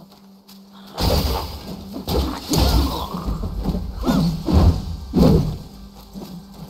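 A staff strikes wood with heavy thuds.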